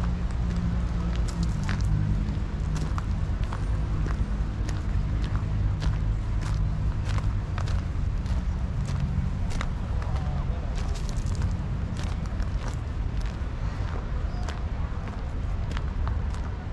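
Footsteps crunch steadily on a gravel path outdoors.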